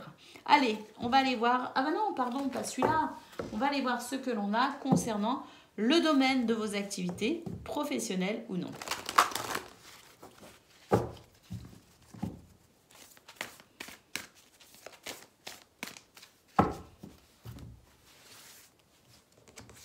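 Cards shuffle and riffle between hands.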